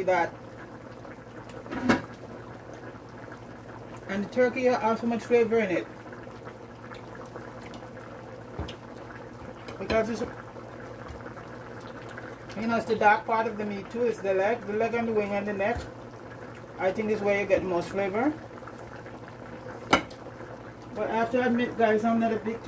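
A pot of soup simmers and bubbles gently.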